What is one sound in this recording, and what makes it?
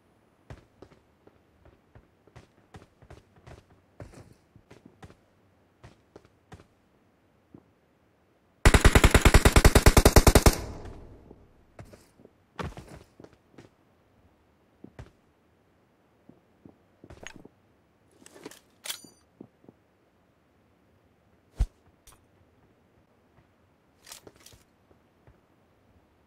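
Footsteps tap on a concrete roof.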